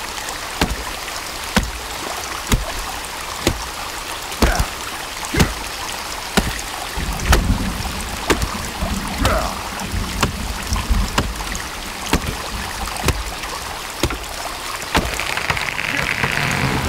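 An axe chops into a tree trunk with steady, regular blows.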